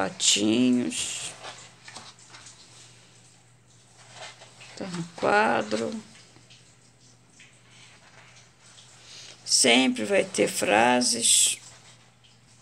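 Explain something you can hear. Paper pages rustle and flip as they are turned.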